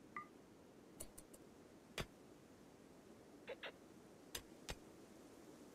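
Picks strike rock with short, sharp taps.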